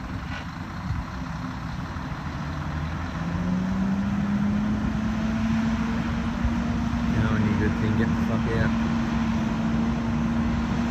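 A truck engine rumbles steadily and its pitch rises.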